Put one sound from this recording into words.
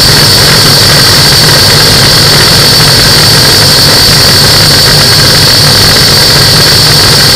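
A small aircraft engine drones loudly and steadily up close.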